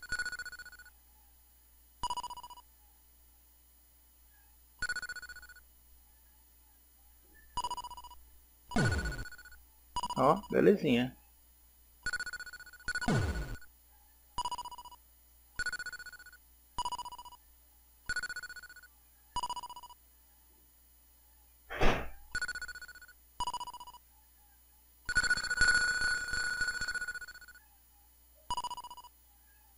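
Electronic game blips ring out each time a ball bounces off a paddle and bricks.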